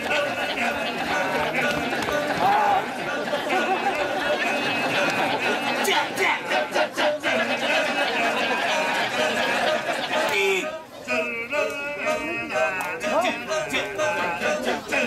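A large group of men chants together in rhythm outdoors.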